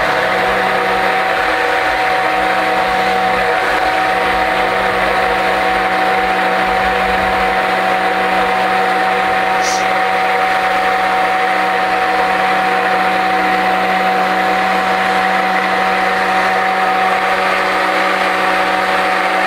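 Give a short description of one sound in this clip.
A stick blender whirs steadily.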